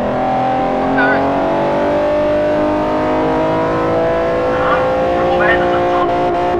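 Tyres squeal briefly in the bends.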